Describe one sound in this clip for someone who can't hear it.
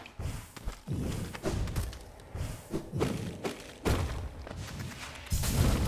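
A blade swishes through the air in quick slashes.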